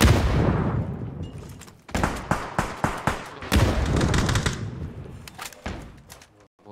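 Gunshots boom loudly and echo, then fade.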